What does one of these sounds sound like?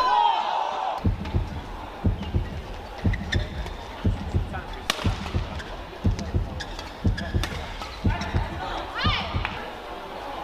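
Footsteps thud quickly on the court.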